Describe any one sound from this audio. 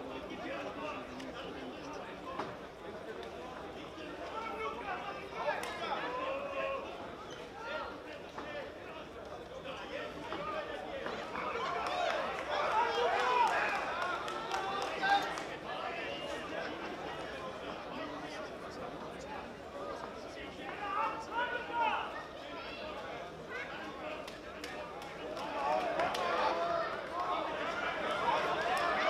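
A crowd murmurs and shouts around an indoor arena.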